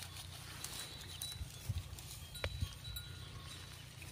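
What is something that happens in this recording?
A cow tears and chews grass.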